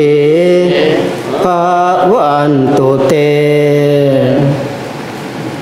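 Monks chant together in low, droning voices through a microphone in an echoing hall.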